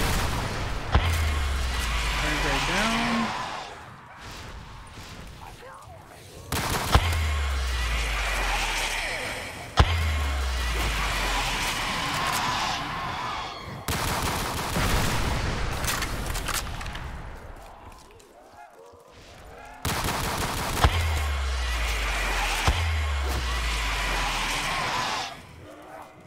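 Rifle shots boom loudly, each followed by a deep rumbling echo.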